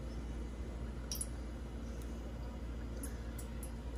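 Oil pours into a metal pan.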